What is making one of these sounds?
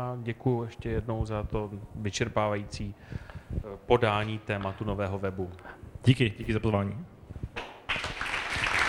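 A man speaks into a microphone.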